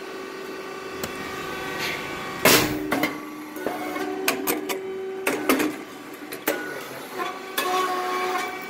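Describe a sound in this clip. A machine clanks and thumps now and then.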